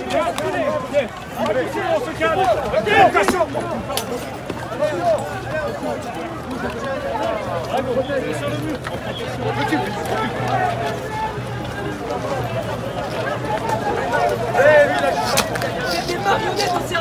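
A crowd of people shouts and chants nearby outdoors.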